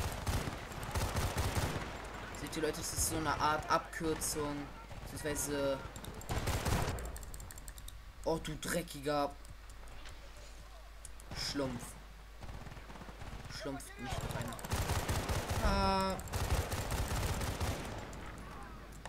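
Rapid gunfire bursts crack loudly.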